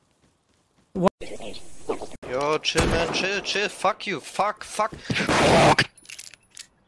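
A man talks with animation into a microphone, close by.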